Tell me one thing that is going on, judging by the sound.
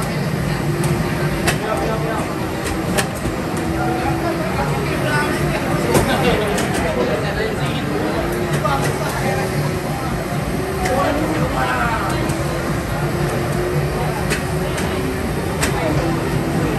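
Music plays loudly from arcade machines.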